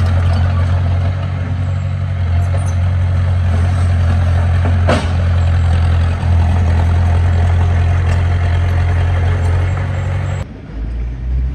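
A bulldozer engine rumbles loudly close by.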